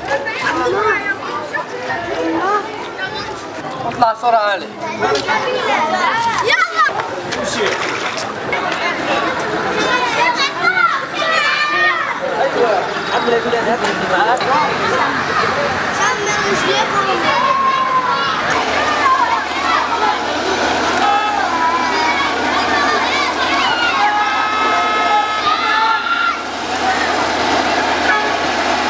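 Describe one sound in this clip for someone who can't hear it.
Children talk and call out nearby.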